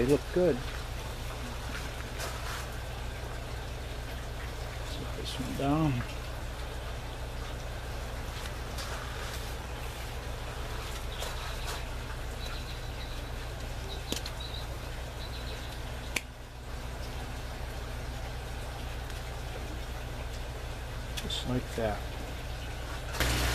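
Leaves and stems rustle as hands handle a plant.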